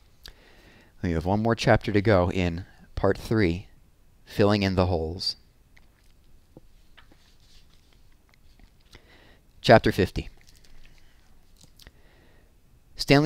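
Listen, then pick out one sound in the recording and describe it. A man speaks close into a headset microphone, reading out calmly.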